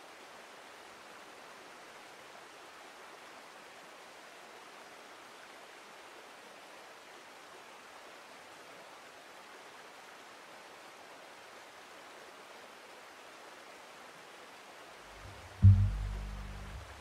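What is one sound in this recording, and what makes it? Horses plod slowly through deep snow.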